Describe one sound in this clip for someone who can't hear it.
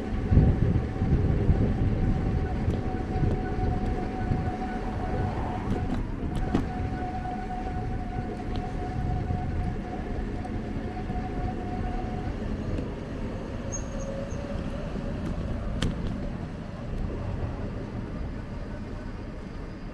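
A low rumble of distant traffic carries on steadily outdoors.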